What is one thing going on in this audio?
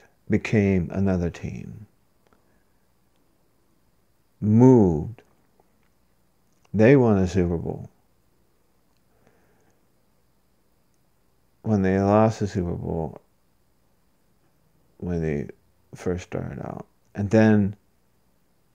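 A middle-aged man speaks close to a microphone, in short phrases with pauses.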